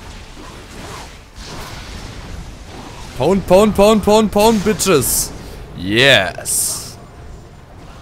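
Magical spell effects burst and crackle during a fight.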